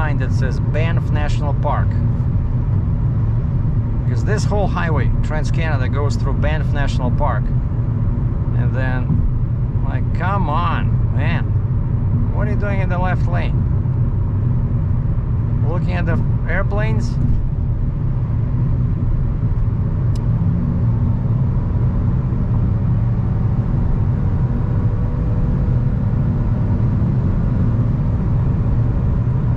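A car engine and tyres rumble steadily on a highway, heard from inside the car.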